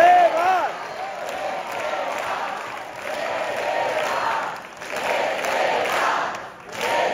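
A woman sings loudly through a microphone in a large hall.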